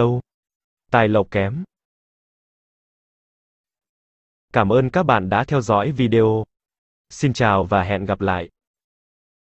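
A man speaks calmly into a close microphone, in short bursts with pauses.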